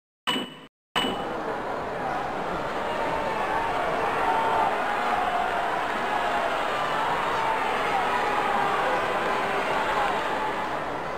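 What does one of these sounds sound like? A large crowd murmurs and cheers in an arena.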